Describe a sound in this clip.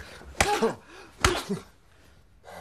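A woman cries out loudly in distress.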